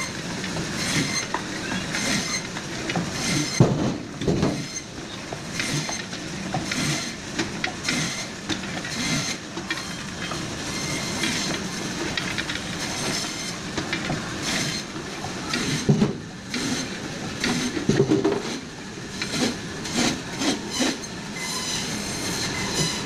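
A band saw whirs steadily as it cuts through frozen fish.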